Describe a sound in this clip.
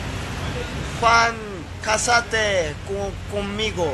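A young man speaks with animation close to a phone microphone.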